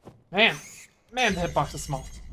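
A winged creature swoops past with a rushing whoosh.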